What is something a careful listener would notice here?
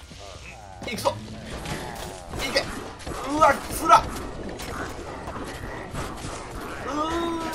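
Magical blasts and hits crackle and boom in a fast game battle.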